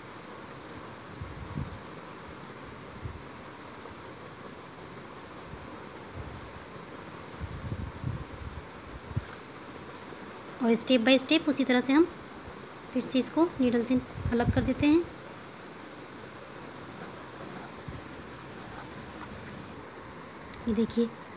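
Thread rustles softly as it is pulled through taut fabric.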